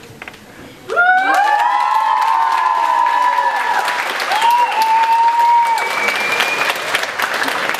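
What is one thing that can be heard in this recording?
Audience members cheer and whoop.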